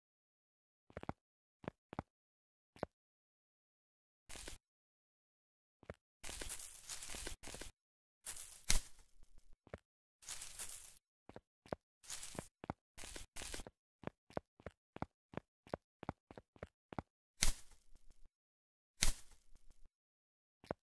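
Light footsteps patter steadily on dry ground.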